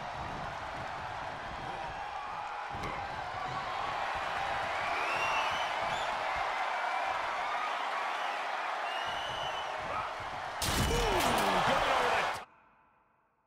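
A large crowd cheers and roars loudly in an arena.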